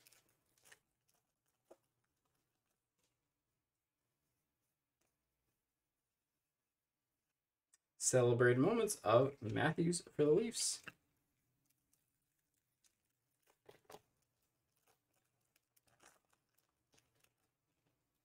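A foil wrapper crinkles softly as hands tear it open.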